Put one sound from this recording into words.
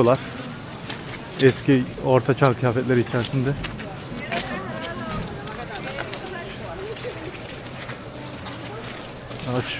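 Footsteps crunch on snowy cobblestones.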